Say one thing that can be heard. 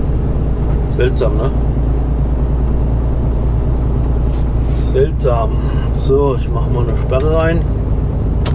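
A man talks briefly in short phrases nearby.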